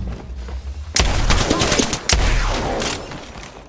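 A gun fires a few sharp, loud shots.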